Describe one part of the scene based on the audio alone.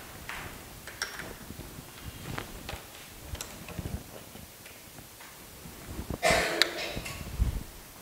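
A man speaks quietly at a distance.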